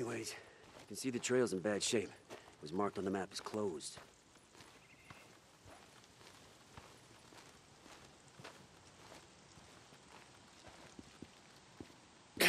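Footsteps crunch on dirt and gravel.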